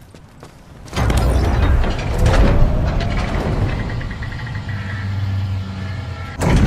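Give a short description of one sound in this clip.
A heavy crane motor hums and whirs.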